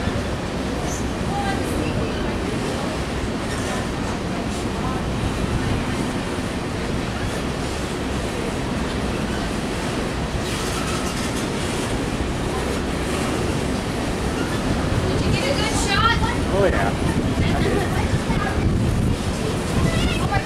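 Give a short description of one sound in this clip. Empty coal hopper cars of a freight train rumble and clatter over the rails.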